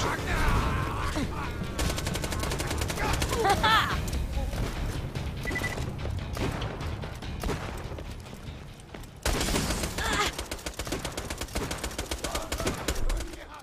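Rapid gunfire crackles in a video game.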